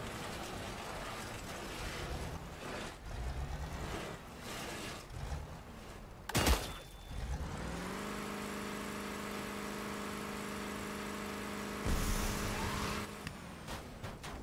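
A vehicle engine hums and revs.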